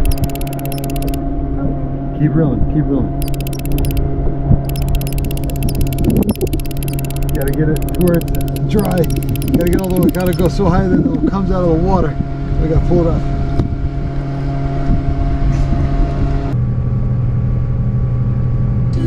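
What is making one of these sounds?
A boat motor hums steadily nearby.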